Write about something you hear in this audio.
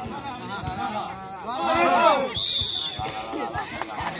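Young men shout and cheer together.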